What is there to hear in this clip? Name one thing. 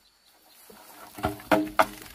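A bamboo pole knocks and scrapes on the ground as it is dragged.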